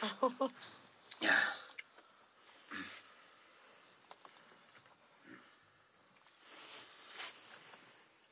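A middle-aged man speaks quietly.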